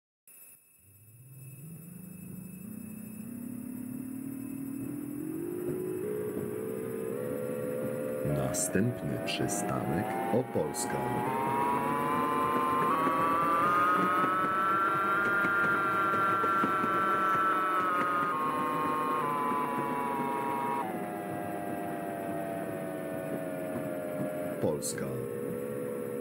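A tram's electric motor whines, rising in pitch as it speeds up and then falling as it slows.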